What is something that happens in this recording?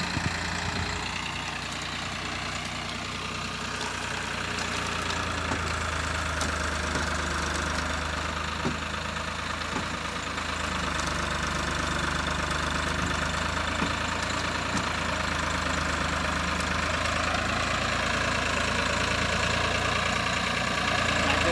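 A tractor engine rumbles steadily and grows slightly louder.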